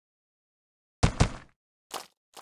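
A small explosion pops with a sharp bang.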